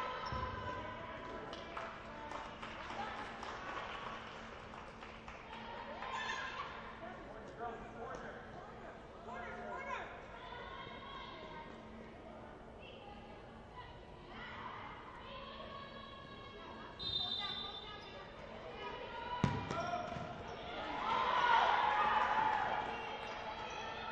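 Players shout and call out to each other across a large echoing hall.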